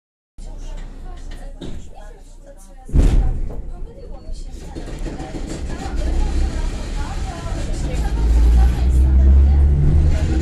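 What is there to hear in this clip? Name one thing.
A train rumbles slowly along the tracks, heard from inside a carriage, growing louder.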